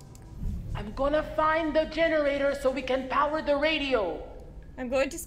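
A young woman speaks calmly and quietly.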